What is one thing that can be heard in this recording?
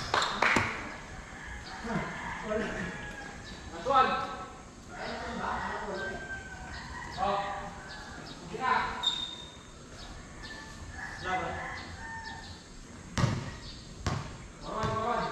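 Young men call out and talk to each other across an open court.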